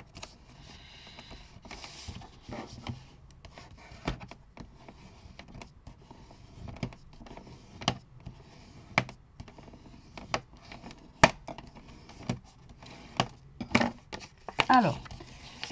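Paper rustles and creases as it is folded by hand.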